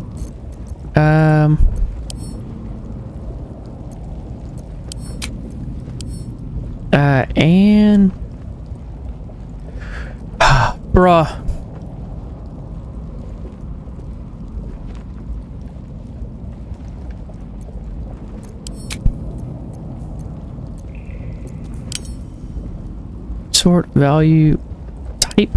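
A man talks calmly into a close microphone, in short bursts.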